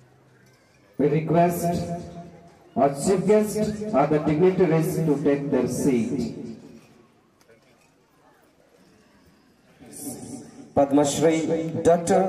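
A group of people sing together outdoors.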